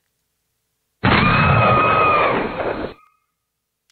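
A short game-over jingle plays.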